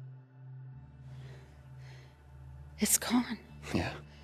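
An elderly woman speaks with worry.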